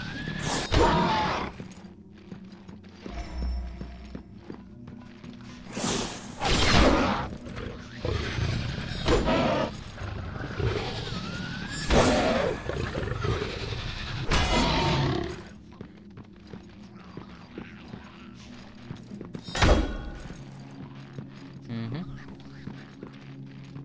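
Blades slash and clash in a fight.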